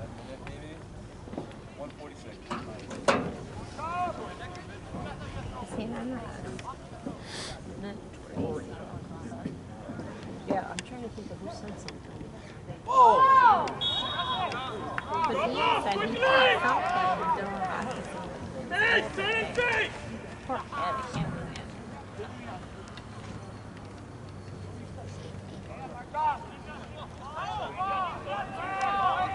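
Players call out to each other across an open field.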